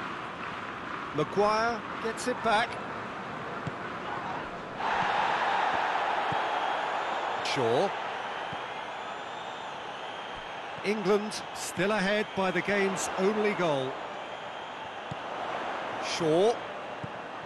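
A large stadium crowd roars steadily, swelling louder partway through.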